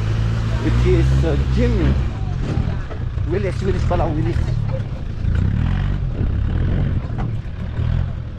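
Tyres crunch over loose dirt and stones.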